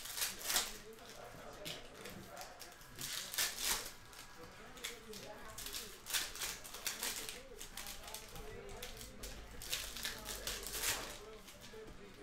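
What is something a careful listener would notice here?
Foil card packs crinkle and tear open.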